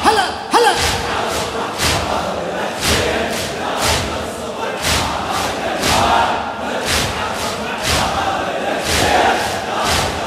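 A large crowd of men beats their chests in a steady rhythm, echoing through a large hall.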